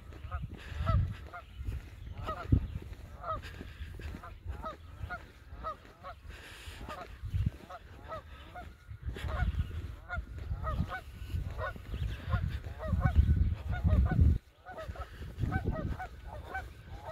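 Footsteps crunch on loose dirt nearby.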